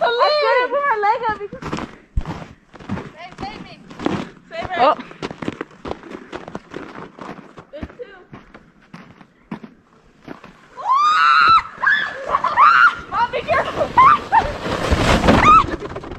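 A plastic sled scrapes over snow.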